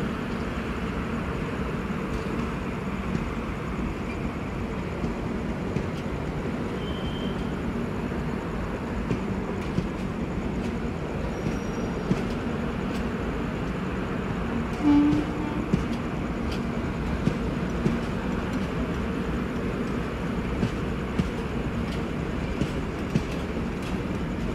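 A passenger train rolls slowly past with a steady low rumble.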